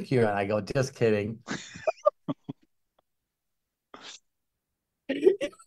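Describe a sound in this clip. Another middle-aged man laughs heartily over an online call.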